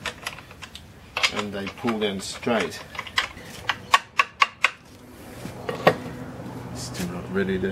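Metal tools clink and knock against a steel axle.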